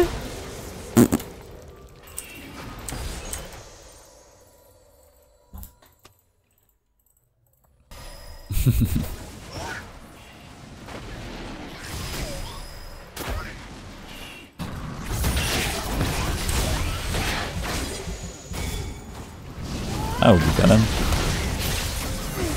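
Video game spells and hits crackle and boom.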